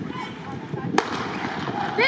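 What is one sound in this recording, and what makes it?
A starting pistol fires once with a sharp crack.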